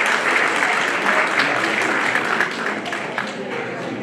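A brass band plays loudly in a hall.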